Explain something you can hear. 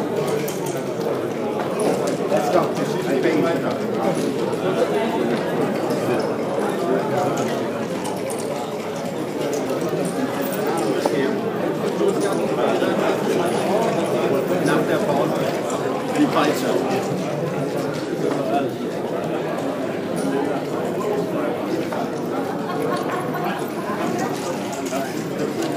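Plastic checkers click as they are slid and set down on a wooden board.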